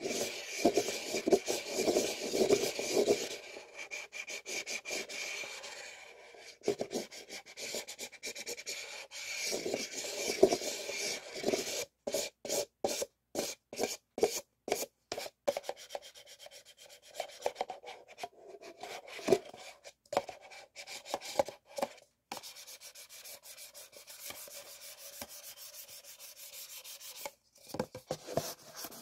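Paper cups tap and knock together.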